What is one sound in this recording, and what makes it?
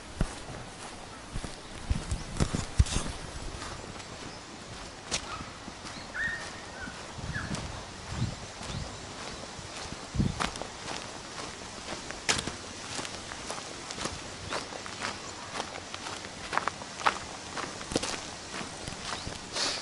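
Footsteps crunch on a gravel path outdoors.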